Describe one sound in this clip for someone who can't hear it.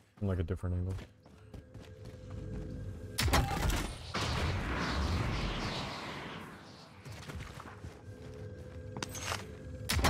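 Footsteps crunch over dirt and wooden boards.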